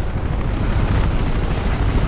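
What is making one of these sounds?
A helicopter's rotor thuds overhead.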